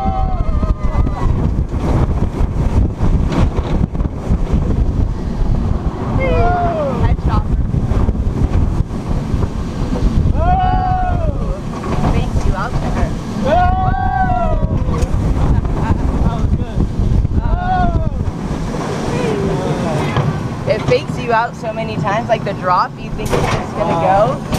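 Wind roars loudly past a close microphone.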